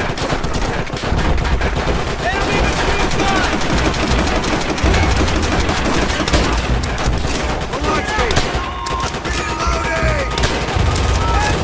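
Explosions boom and rumble in the distance.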